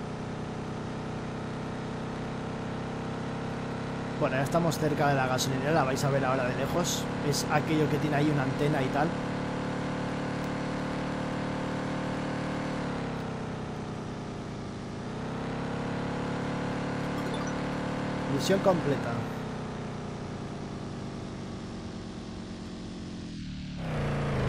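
A car engine hums steadily, dipping and rising in pitch.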